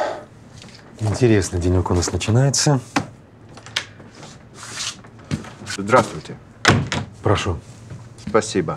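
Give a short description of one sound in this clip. Another middle-aged man speaks calmly, close by.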